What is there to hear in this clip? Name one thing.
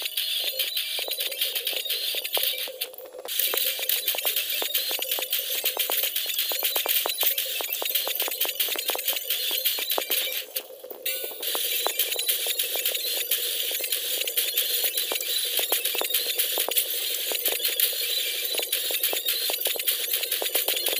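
Upbeat game music plays steadily.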